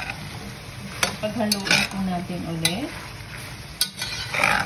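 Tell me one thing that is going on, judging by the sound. A spatula stirs chunks of vegetables and meat in a metal pot.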